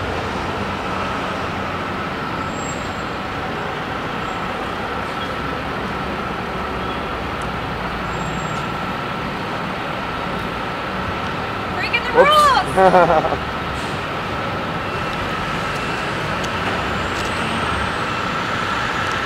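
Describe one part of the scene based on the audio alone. Steady city traffic rumbles in the background.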